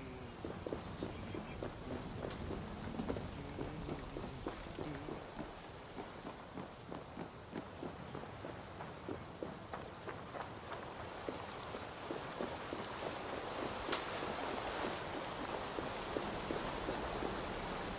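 Footsteps thud steadily on dirt and wooden planks.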